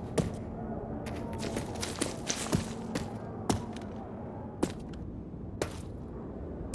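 Footsteps clack on a hard floor.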